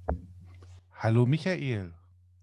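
A man speaks with animation close to a microphone, heard through an online call.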